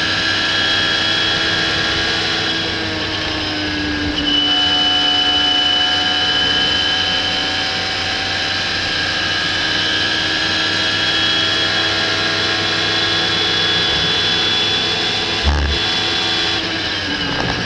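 A racing car engine roars at high revs, shifting gears as it speeds along.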